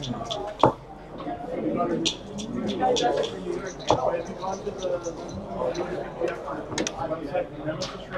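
Plastic checkers click as a hand moves them on a board.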